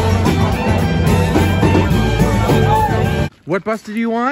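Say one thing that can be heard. A live band plays loud music to a crowd.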